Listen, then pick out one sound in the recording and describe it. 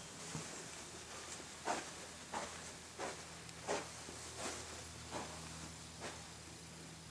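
Footsteps pad softly across carpet.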